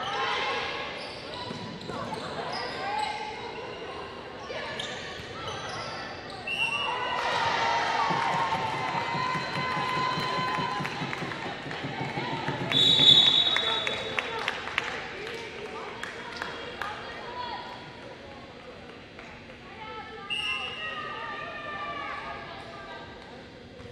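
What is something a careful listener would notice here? Players' shoes squeak sharply on a wooden court in a large echoing gym.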